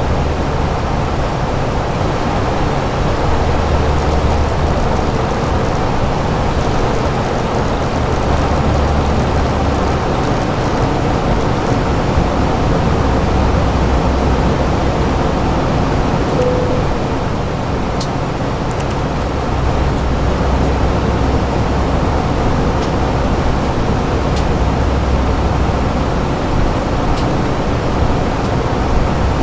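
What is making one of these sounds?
A steady low roar of jet engines fills an aircraft cockpit.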